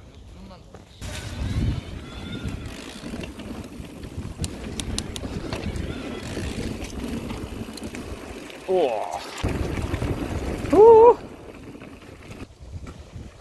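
Bicycle tyres rumble and rattle over a dirt trail.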